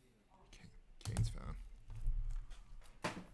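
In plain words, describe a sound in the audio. Hands handle and set down a plastic card case with light knocks.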